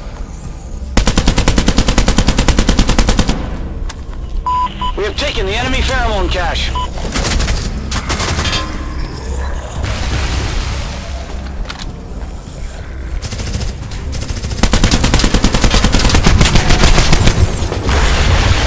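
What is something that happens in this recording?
Rapid bursts of gunfire crack out close by.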